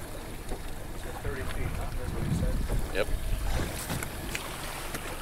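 Waves slosh and splash against a boat's hull.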